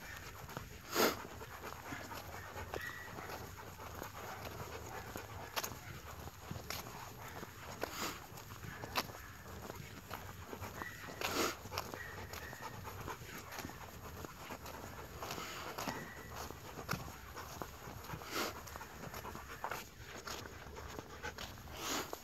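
A dog pants while walking.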